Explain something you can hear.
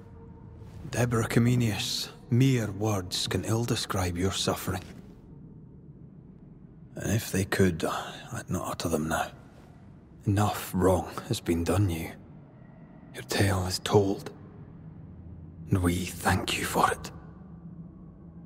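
A man speaks calmly and gravely in a low voice, close by.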